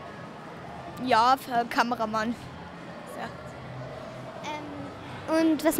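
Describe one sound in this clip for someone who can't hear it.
A second young boy answers into a close microphone.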